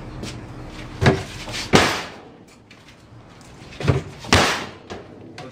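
A sledgehammer smashes into wooden furniture with loud cracks.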